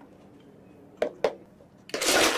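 Plastic cups tap on a counter.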